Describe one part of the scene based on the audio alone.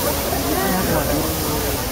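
Steam hisses out of a giant robot statue.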